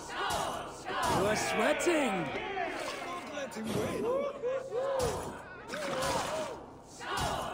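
A man shouts loudly with animation.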